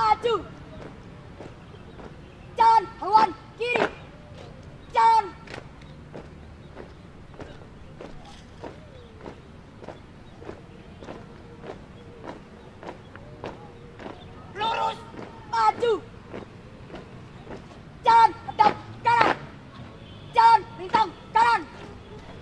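Young people shout marching calls loudly in unison outdoors.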